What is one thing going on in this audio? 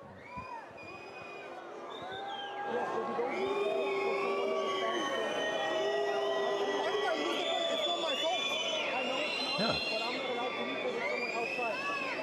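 A young man argues heatedly up close.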